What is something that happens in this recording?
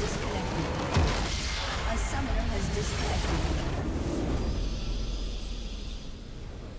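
A large structure explodes with a deep, rumbling boom.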